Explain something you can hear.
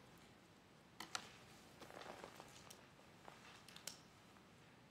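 Papers rustle close by.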